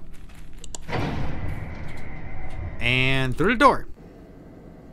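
A mechanical lift rumbles as it rises.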